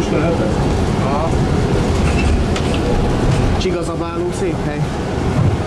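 Tram wheels squeal on the rails now and then.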